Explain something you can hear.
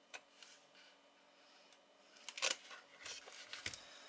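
A circuit board knocks and rattles as it is picked up.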